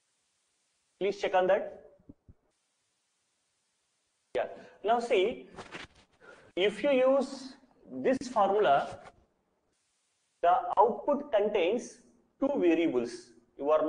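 A man explains calmly and clearly, close to a microphone, in short bursts with pauses.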